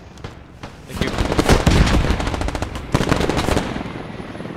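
A grenade explodes nearby with a loud blast and rumbling roar.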